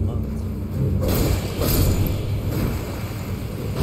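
Flames whoosh and crackle.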